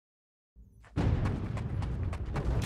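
Fighting game sounds thump and clash.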